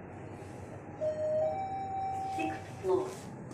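An elevator chime rings on arrival at a floor.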